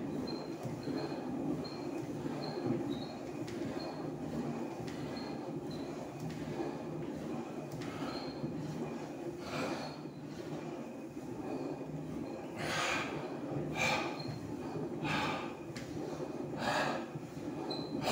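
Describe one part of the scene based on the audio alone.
An elliptical exercise machine whirs and creaks rhythmically.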